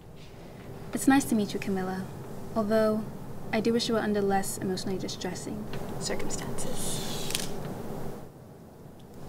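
A young woman speaks calmly and hesitantly nearby.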